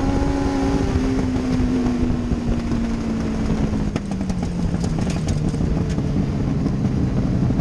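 A race car engine roars loudly up close, its pitch slowly falling.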